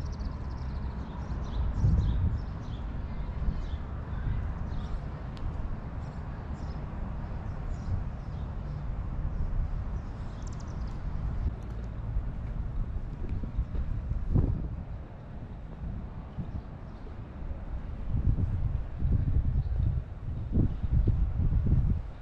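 Wind blows across the microphone outdoors in gusts.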